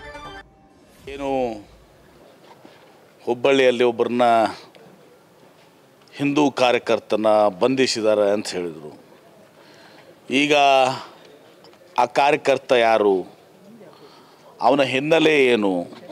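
A man speaks emphatically into microphones, with pauses.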